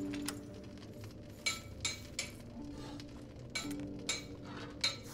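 A hammer rings sharply on an anvil in a steady rhythm.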